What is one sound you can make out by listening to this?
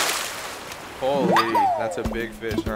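A short cheerful jingle plays.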